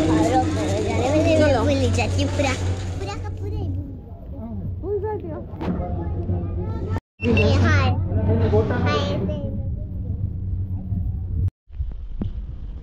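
A young girl talks and squeals excitedly close by.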